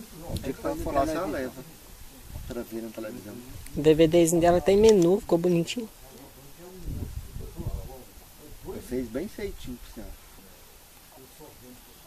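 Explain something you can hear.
An elderly woman talks calmly nearby.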